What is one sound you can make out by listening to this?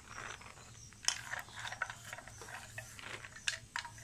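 Dry lentils patter softly as they are poured onto flour.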